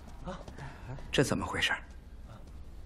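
A middle-aged man asks a question in a stern voice.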